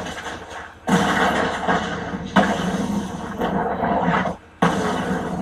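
Video game fire bursts and roars through a television speaker.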